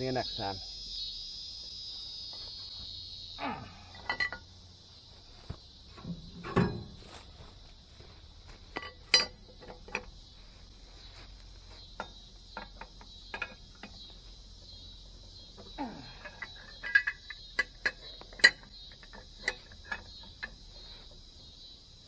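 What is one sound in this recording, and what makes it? Metal clanks and clicks against a truck wheel.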